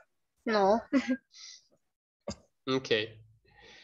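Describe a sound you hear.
A child speaks over an online call.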